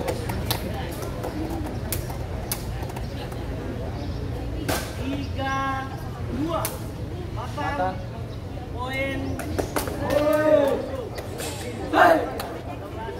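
A volleyball is struck hard by hand.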